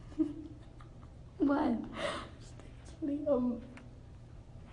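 Teenage girls talk and giggle close to a phone's microphone.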